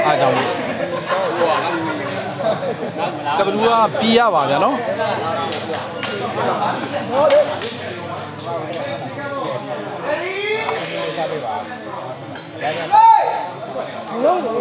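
A crowd of men shouts and cheers loudly nearby.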